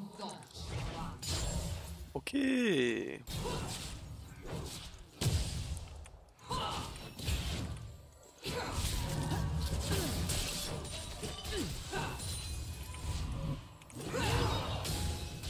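Game spell effects whoosh and zap in quick bursts.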